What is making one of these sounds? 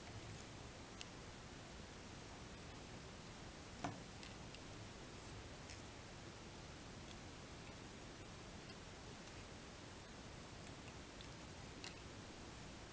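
Fingers handle thread with soft, faint clicks and rustles.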